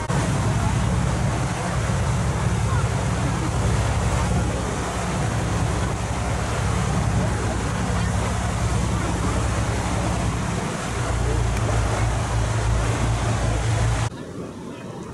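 A boat engine rumbles steadily up close.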